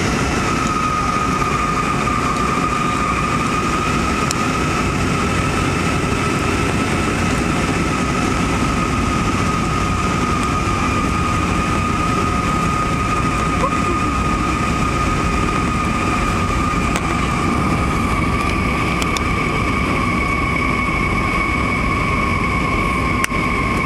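Jet engines roar steadily with a constant high whine inside an airliner cabin.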